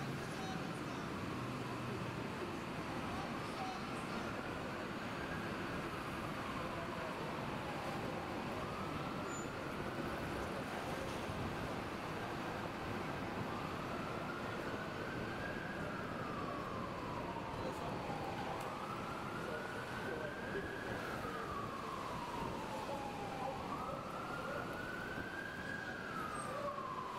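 City traffic rumbles nearby.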